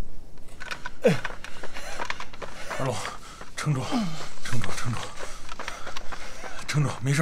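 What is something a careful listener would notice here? Two men grunt and pant heavily as they run nearby.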